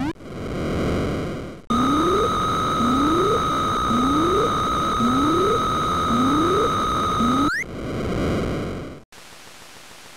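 Electronic whooshing noises swell and fade.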